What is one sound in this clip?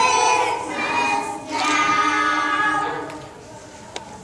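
A group of young children sing together in an echoing hall.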